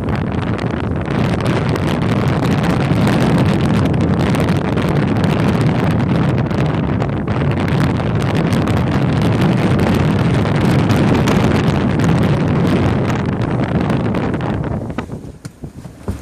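Choppy waves splash against a sailboat's hull.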